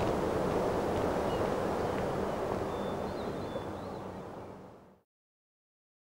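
Strong wind blows and rumbles outdoors.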